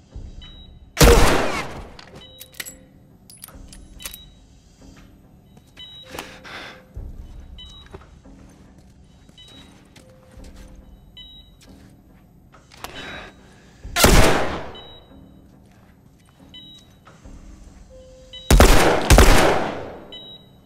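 Gunshots ring out loudly and echo.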